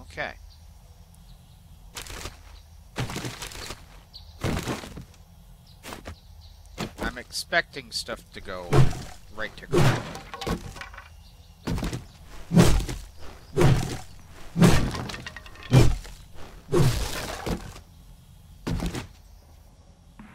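A man talks into a close microphone, casually and with animation.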